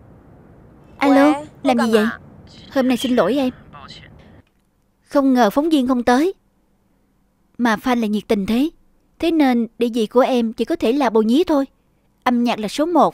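A young woman talks on a phone close by, calmly, with pauses.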